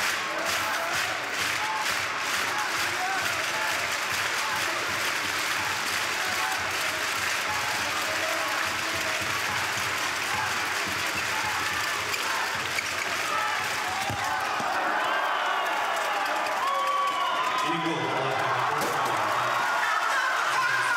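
A ball bounces on a hard court floor.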